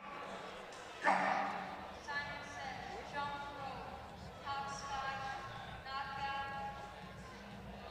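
A boy answers into a microphone, heard over loudspeakers in a large echoing hall.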